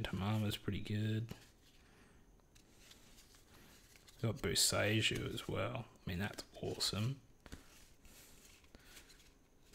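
Playing cards slide and flick against each other in a hand.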